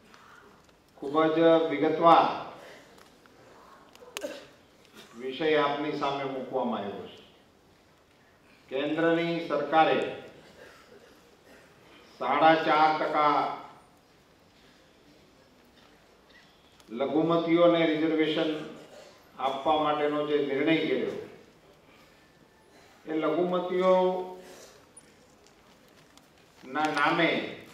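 A middle-aged man speaks forcefully into a microphone in short bursts, with pauses between phrases.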